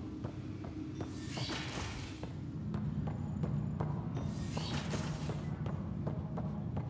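A sliding door whooshes open.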